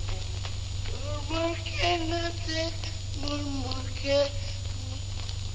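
A man sings out loudly nearby.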